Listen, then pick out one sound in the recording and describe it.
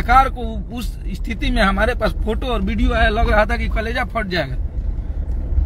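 A man speaks emotionally and loudly, close to the microphone.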